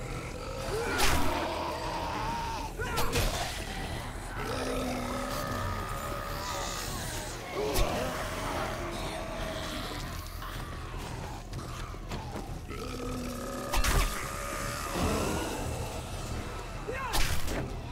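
Knife slashes strike flesh with sharp hits.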